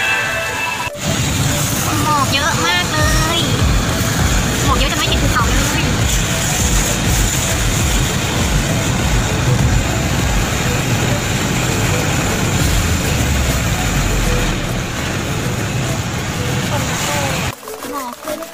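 Tyres hiss steadily on a wet road as a car drives along.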